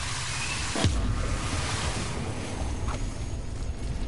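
An electric energy field crackles and hums.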